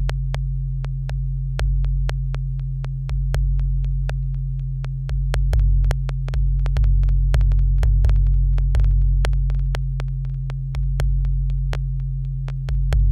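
Electronic drum machine beats click in a steady, fast rhythm.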